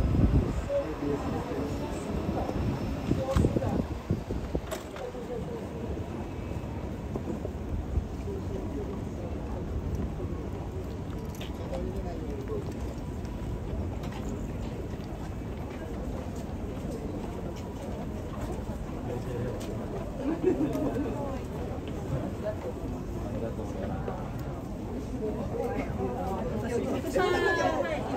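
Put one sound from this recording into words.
Street traffic hums steadily in the background.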